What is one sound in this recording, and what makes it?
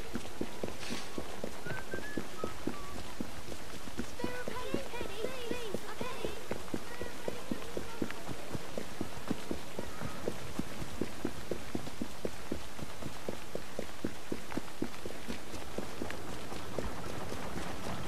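Quick footsteps run over wet stone.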